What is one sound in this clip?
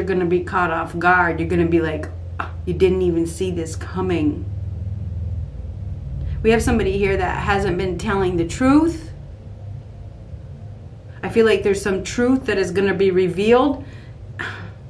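A middle-aged woman speaks expressively, close to a microphone, in short bursts with pauses.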